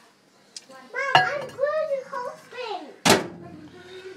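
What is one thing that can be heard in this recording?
A microwave door shuts with a thud.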